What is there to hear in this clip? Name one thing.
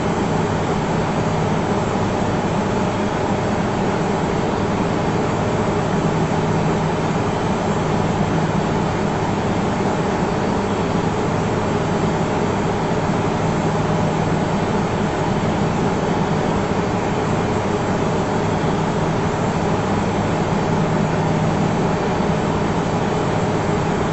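Jet engines roar in a steady, loud drone.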